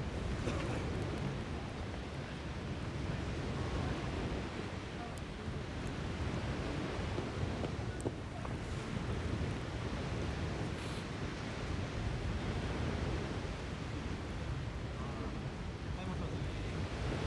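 A small wood fire crackles and pops.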